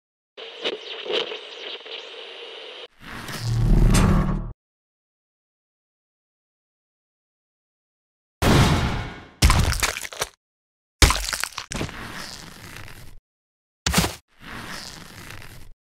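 Electronic game sound effects play in short bursts.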